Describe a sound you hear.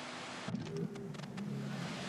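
Boots thud on a wooden deck.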